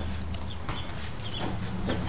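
Footsteps scuff on a concrete floor.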